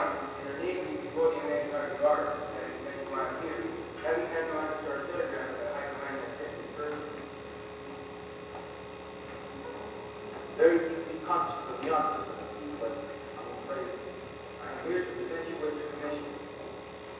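Men speak loudly on a stage in a hall with a slight echo.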